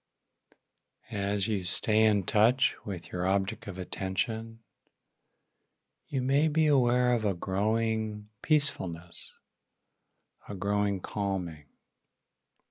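An older man speaks calmly and slowly, close to a microphone, with long pauses.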